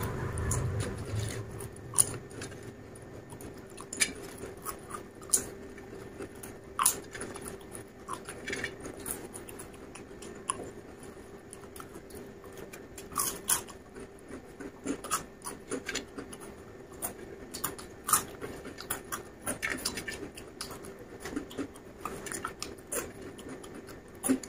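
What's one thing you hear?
A man crunches crisp chips loudly, close up.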